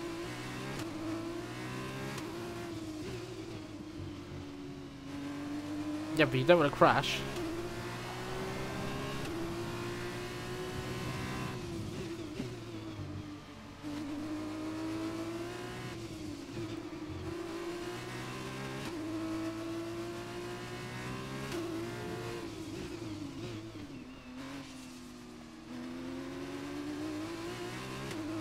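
A racing car engine whines loudly, rising and falling in pitch as it shifts gears.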